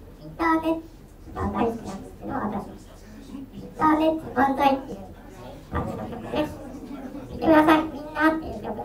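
A young woman speaks in a high, cheerful voice over loudspeakers in bursts.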